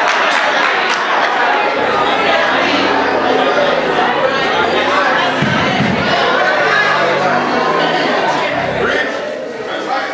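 A congregation murmurs together in prayer.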